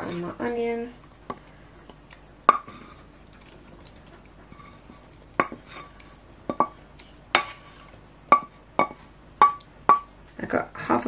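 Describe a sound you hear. A metal spoon taps and clinks against a glass jug.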